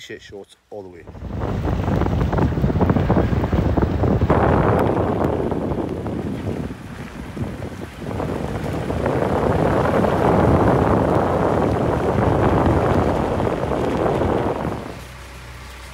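Heavy rain and wind roar loudly outdoors.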